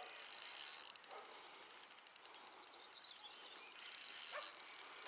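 A fishing reel clicks rapidly as a line is wound in.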